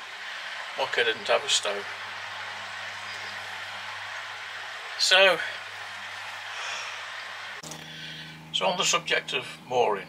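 An older man talks calmly nearby.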